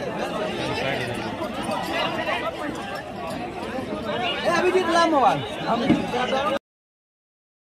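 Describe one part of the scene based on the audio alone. Young men shout excitedly.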